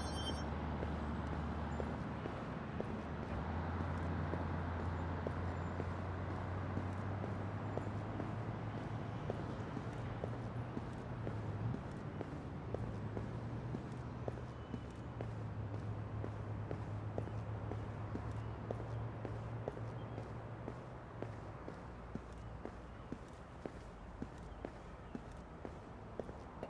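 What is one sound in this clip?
Traffic hums and rumbles steadily nearby.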